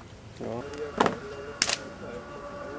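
Rifles fire a salute in sharp cracks.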